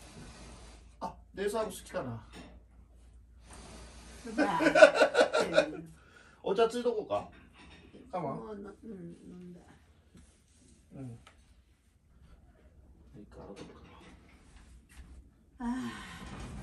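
An elderly woman speaks and laughs nearby.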